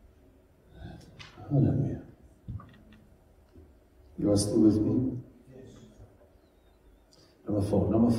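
An older man speaks calmly through a microphone, heard over loudspeakers in a room that echoes a little.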